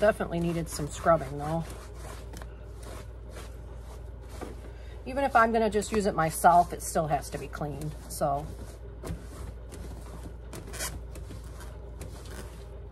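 Fabric rustles as a cloth rubs over a bag.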